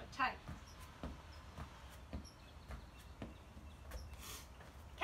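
Feet thump softly on a mat.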